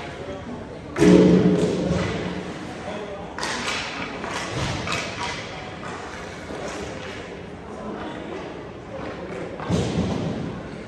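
Hockey sticks clack against the ice and the puck.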